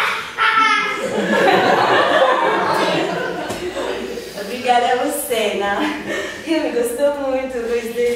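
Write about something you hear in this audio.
A woman speaks expressively, as if performing, in a room with a slight echo.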